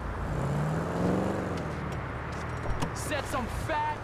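A car door opens.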